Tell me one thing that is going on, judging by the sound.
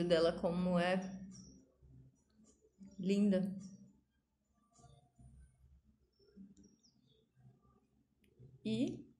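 A woman speaks calmly and close by, in short bursts.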